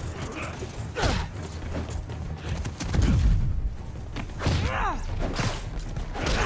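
Punches and blows thud in a fight.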